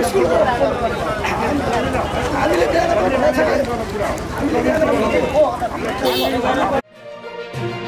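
A man shouts and argues among a crowd.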